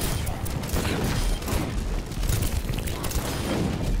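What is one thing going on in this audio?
An explosion bursts loudly.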